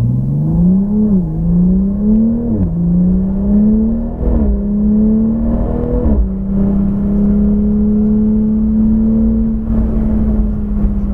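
A car engine roars loudly from inside the cabin, rising in pitch through each gear and dropping briefly at every gear change.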